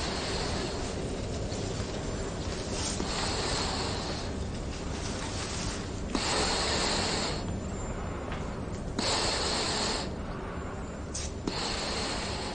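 A young man breathes heavily through a respirator mask.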